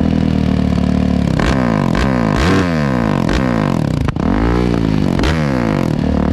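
A motorbike engine revs hard and repeatedly, close by, with rapid rising and falling whines.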